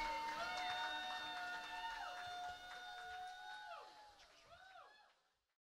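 An electric guitar plays loud sustained notes that bend down in pitch and fade away.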